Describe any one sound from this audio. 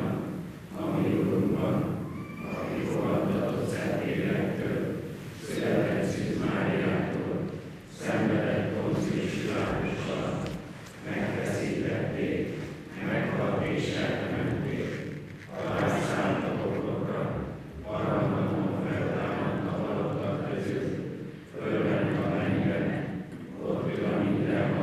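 A man speaks steadily into a microphone in a large echoing hall.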